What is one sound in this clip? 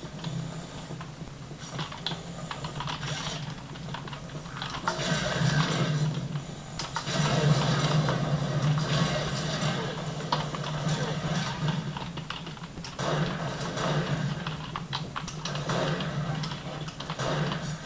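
Gunfire and game effects play loudly from small speakers.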